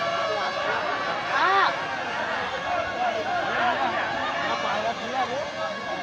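A crowd of young men shouts and talks over one another outdoors.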